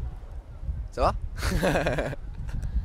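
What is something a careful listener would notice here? Two young men laugh out loud.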